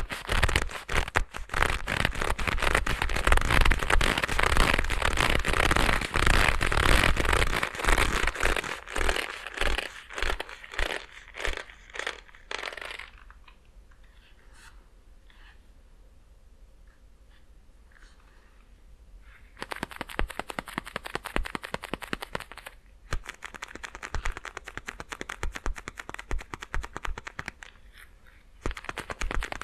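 Gloved fingers tap rapidly and crisply very close by.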